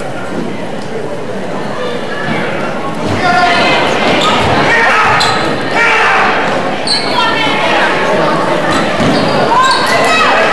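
A crowd cheers and shouts in a large echoing gym, growing louder.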